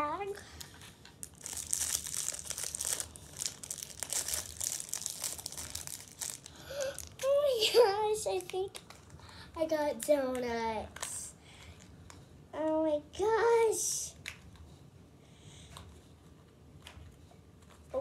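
Plastic wrapping crinkles and rustles as a young girl tears it open.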